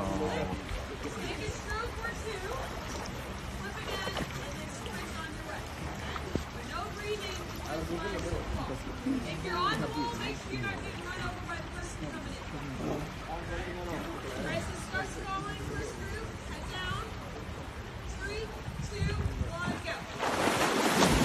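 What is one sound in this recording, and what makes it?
People chatter in the water nearby.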